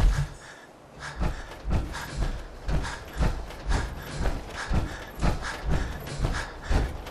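Heavy metal footsteps clank and thud on rough ground at a steady walking pace.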